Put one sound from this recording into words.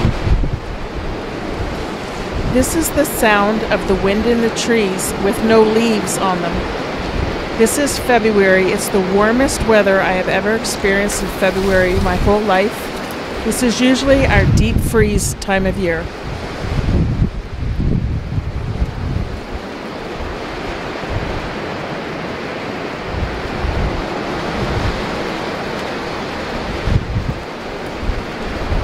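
Wind rushes through bare tree branches outdoors.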